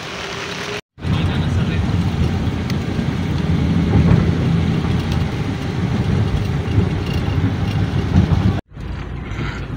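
A car drives along, with road noise heard from inside the car.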